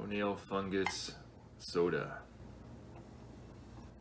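Liquid pours and fizzes into a glass.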